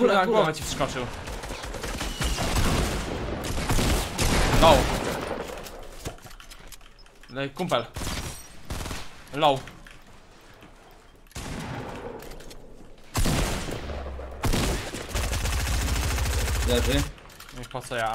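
Gunshots fire from a video game.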